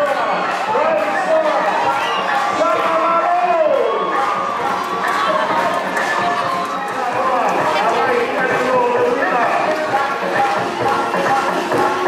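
A crowd of fans cheers and shouts loudly.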